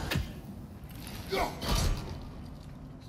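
An axe strikes with a heavy thud.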